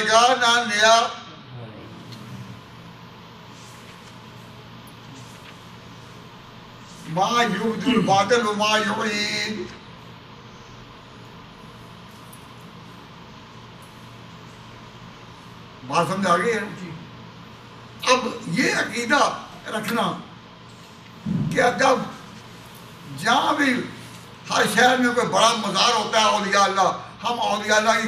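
An elderly man speaks with animation through a microphone, pausing often.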